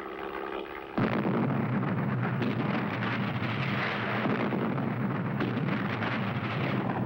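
An artillery gun fires with loud booms.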